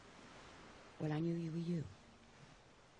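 An older woman speaks calmly, close by.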